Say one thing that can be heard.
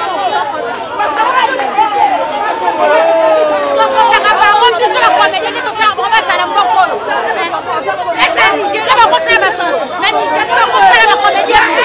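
A middle-aged woman shouts loudly and angrily close by.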